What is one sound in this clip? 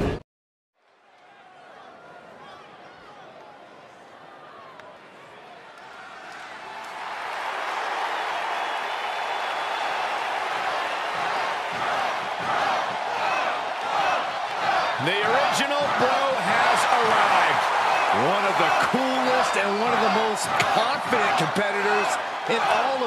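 A large crowd cheers and roars in a big echoing arena, growing louder.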